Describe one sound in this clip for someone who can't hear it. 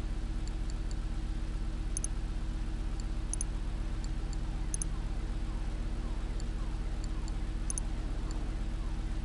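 Short electronic clicks tick now and then.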